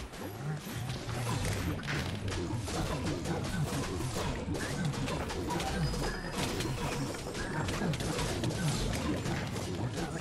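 Game sounds of fighting clash and burst in quick succession.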